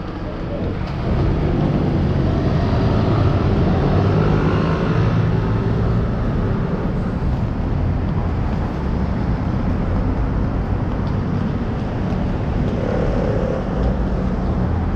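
Traffic hums steadily along a nearby street.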